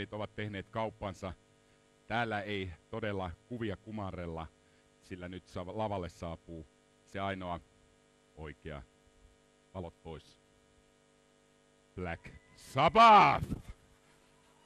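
A man speaks loudly and with animation through a microphone in an echoing hall.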